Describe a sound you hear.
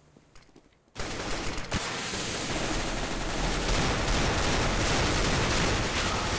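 A smoke grenade hisses steadily.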